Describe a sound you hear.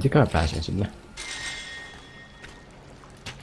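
A magical sparkle shimmers and chimes.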